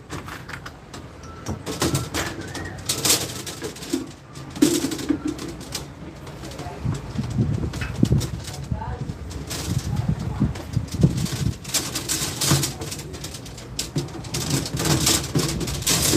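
Metal tubing scrapes against a hard surface.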